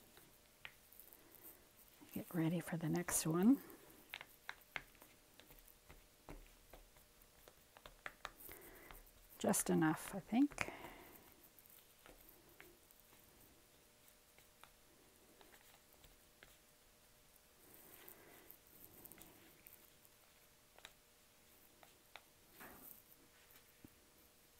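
A wooden stick scrapes and taps inside a plastic cup of paint.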